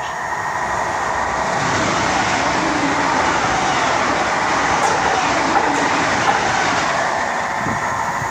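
A passenger train rushes past with a loud roar.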